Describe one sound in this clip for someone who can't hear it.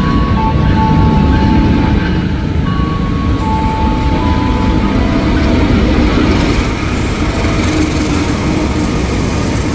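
A diesel-electric locomotive rumbles past.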